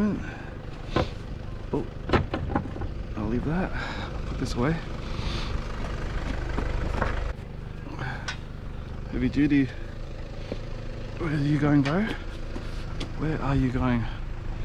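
Metal and wooden furniture knocks and clatters as it is handled.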